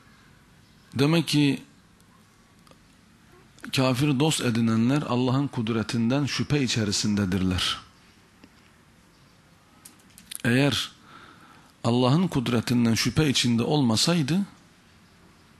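A man speaks slowly and firmly into a microphone, with long pauses.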